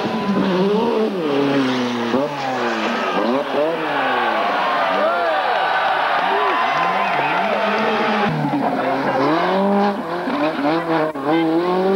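A rally car engine revs hard and rises and falls in pitch through quick gear changes.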